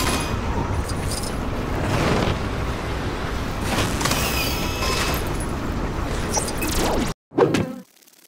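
Video game machinery whirs and clanks loudly.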